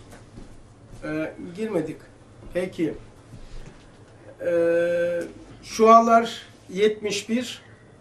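An elderly man speaks slowly and thoughtfully, close by.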